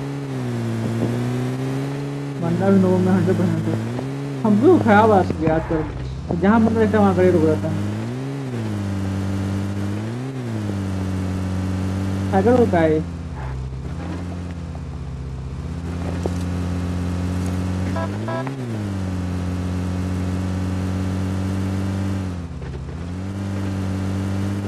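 A vehicle engine drones steadily, rising and falling in pitch as it drives.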